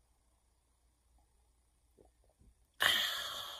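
A woman gulps a drink.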